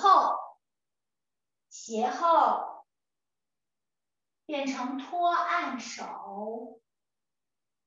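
A woman speaks calmly, as if instructing, heard through an online call.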